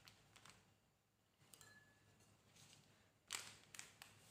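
A plastic sachet crinkles and rustles.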